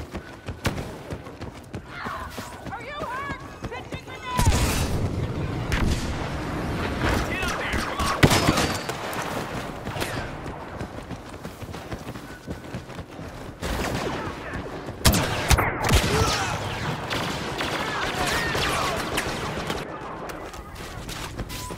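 Blaster guns fire sharp laser shots in quick bursts.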